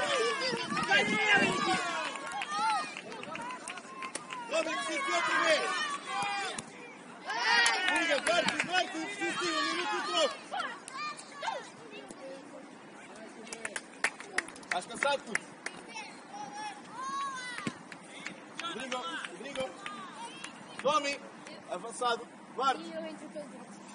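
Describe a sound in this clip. Young players shout and call to each other outdoors in the open.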